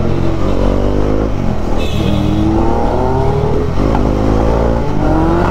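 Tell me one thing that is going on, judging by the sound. A motorcycle engine hums and revs up and down close by.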